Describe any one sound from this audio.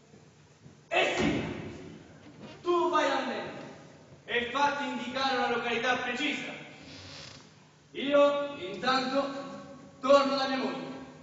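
A man speaks loudly and with animation in a large echoing hall.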